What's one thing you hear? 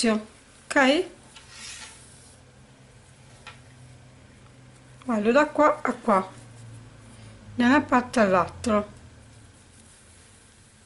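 Knitted fabric rustles softly as hands handle it.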